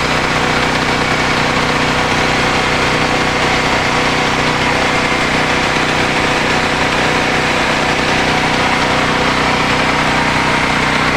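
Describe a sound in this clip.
A generator engine runs with a loud, steady drone close by.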